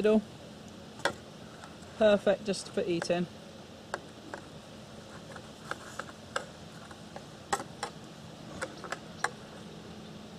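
A knife clicks and scrapes against a plate.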